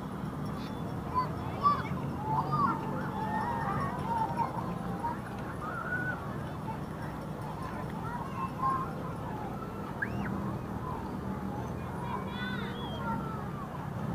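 Children call out and shout across an open square.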